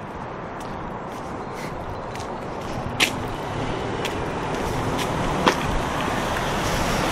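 A car approaches slowly along a wet road, growing louder.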